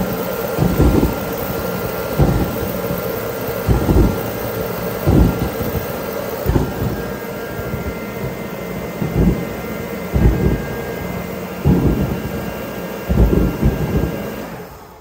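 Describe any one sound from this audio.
A kerosene heater chugs with repeated deep thumps.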